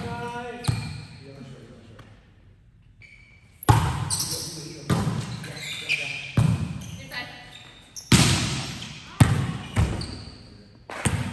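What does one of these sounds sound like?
A volleyball thuds off players' hands and arms, echoing in a large hall.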